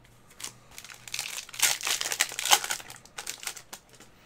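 A foil card pack crinkles as it is torn open.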